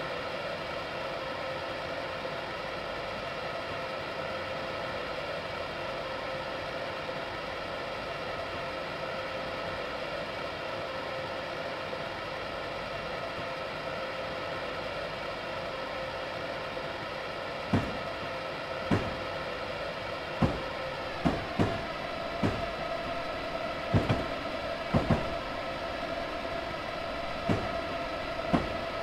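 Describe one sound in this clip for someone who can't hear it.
A train's electric motor hums steadily from inside the cab.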